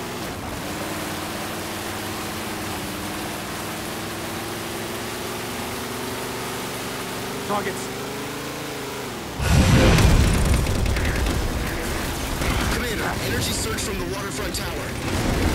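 Water splashes under wheels.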